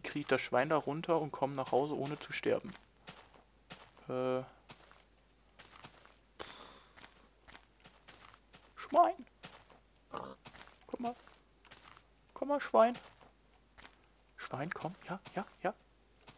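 Footsteps crunch steadily on grass and dirt.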